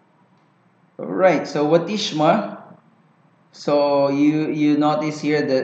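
A young man speaks calmly and clearly into a microphone, close by.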